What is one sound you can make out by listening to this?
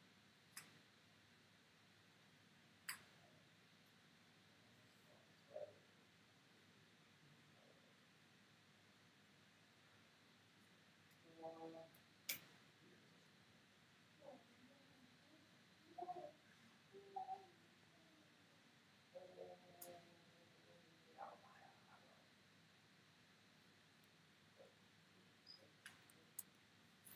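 Short electronic clicks and chimes sound now and then.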